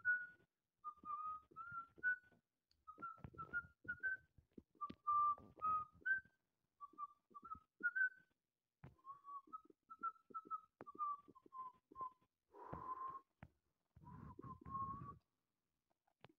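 A cat chirps and trills softly over and over.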